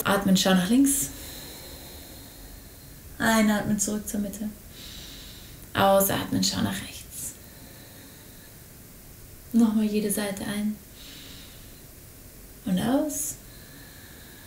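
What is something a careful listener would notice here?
A young woman speaks calmly in short bursts, close to a microphone, with pauses between.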